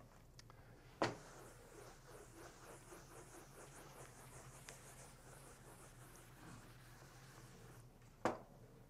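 A felt eraser rubs against a chalkboard with a soft, steady swishing.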